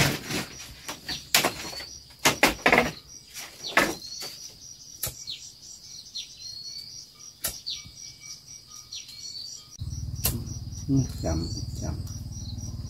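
Cord rubs and taps against a bamboo frame.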